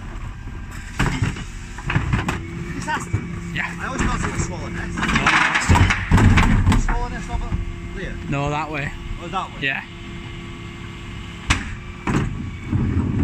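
Plastic wheelie bins clatter and bang against metal.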